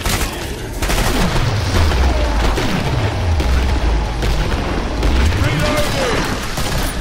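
A monster growls and shrieks close by.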